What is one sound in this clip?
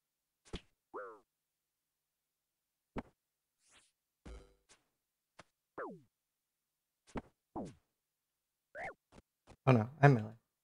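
Short electronic game sound effects swoop and chime.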